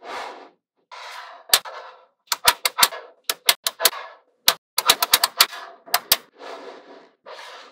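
Magnetic balls rattle and shift in a rustling patter.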